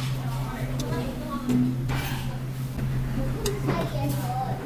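Utensils clink against a bowl.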